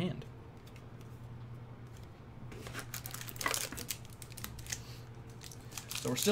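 Playing cards rustle and tap as a hand handles them.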